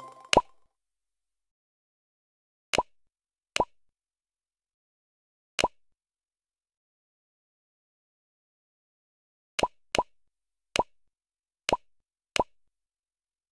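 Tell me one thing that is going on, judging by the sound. Short electronic menu clicks pop now and then.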